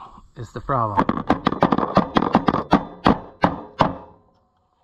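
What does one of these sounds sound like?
A metal wrench clicks against a bolt.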